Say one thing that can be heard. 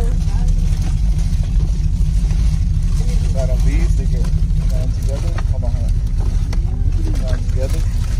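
A car engine rumbles low and steady inside the cabin.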